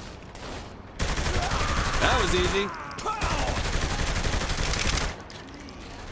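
A rapid burst of automatic gunfire rattles loudly.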